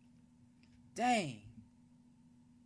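A young man exclaims briefly into a close microphone.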